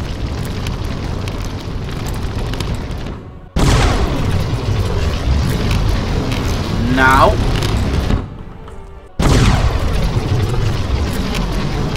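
A fireball roars past.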